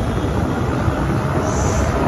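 A pickup truck engine drives past.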